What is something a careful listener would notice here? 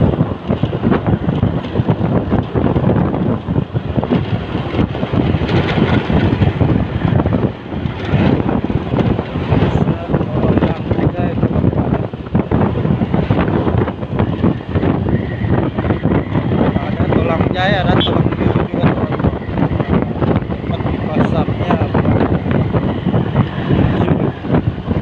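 A motorcycle engine hums steadily while riding along a road.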